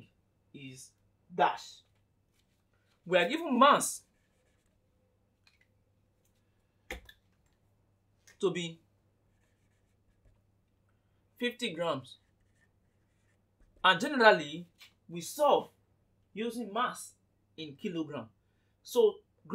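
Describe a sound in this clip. A young man speaks calmly, close by, in short bursts with pauses.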